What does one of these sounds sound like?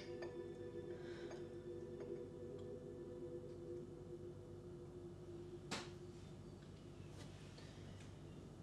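Dishes clink softly in a sink.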